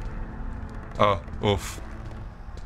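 A young man laughs through a close microphone.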